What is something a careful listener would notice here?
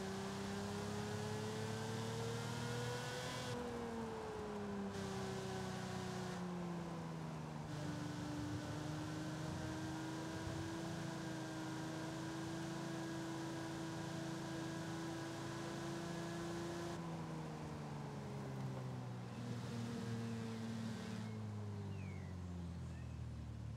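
A sports car engine hums steadily, its pitch rising and falling with gear shifts.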